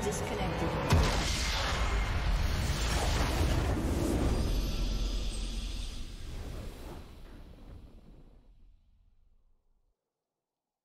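A triumphant fanfare booms out, then slowly fades away.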